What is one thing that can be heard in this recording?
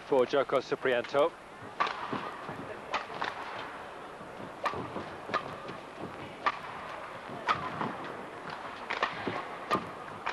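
A shuttlecock is struck sharply by rackets in a rally.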